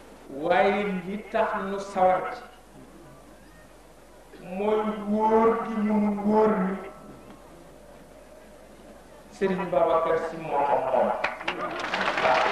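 A man speaks slowly and forcefully through microphones and loudspeakers, with long pauses.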